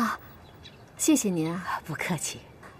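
A young woman says thanks politely nearby.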